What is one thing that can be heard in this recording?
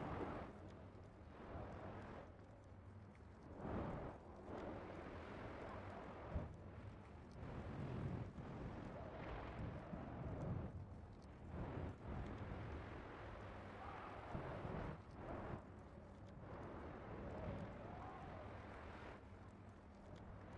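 Energy blasts crackle and whoosh in bursts.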